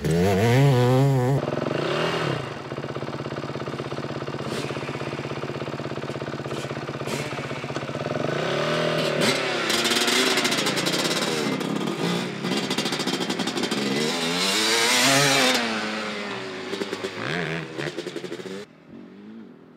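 A quad bike engine revs loudly, rising and falling in pitch.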